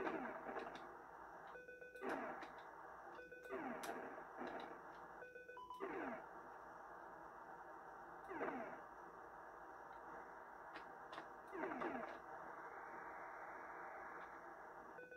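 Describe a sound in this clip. A video game jet engine drones steadily.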